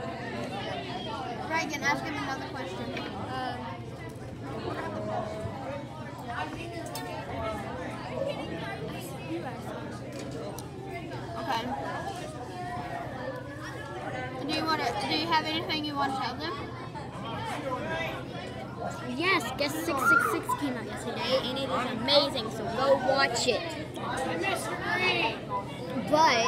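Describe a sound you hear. A young boy talks close by with animation.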